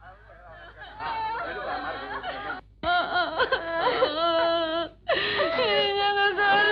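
A woman wails loudly in grief, her cries rising and falling.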